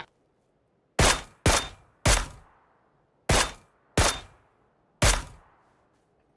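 Rifle shots ring out one by one, with a short echo.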